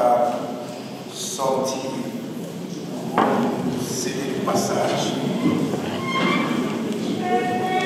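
Several adults talk at once nearby.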